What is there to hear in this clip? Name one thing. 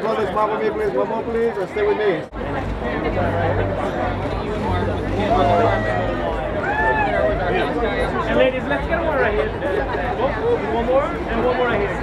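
A crowd of men and women talk and call out loudly nearby.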